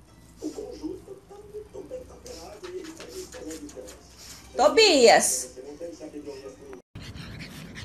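A small dog whines and grumbles close by.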